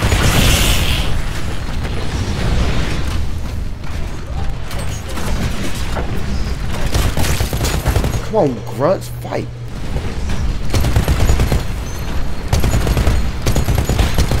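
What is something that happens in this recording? Heavy mechanical footsteps thud and clank.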